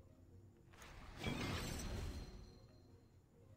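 A magic spell bursts with a rushing whoosh.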